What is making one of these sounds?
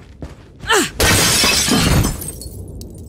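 Glass shatters as a window breaks.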